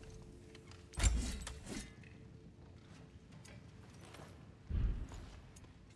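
A menu makes a soft whooshing sound as it opens and closes.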